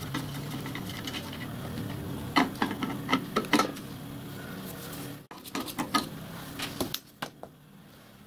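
Metal parts clink and knock together.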